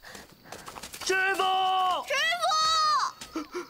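A man wails and calls out, sobbing.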